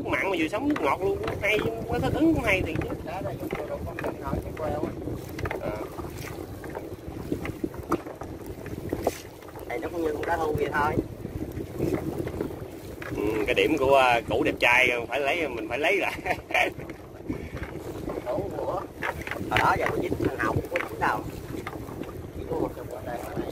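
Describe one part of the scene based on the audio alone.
Wind blows across open water.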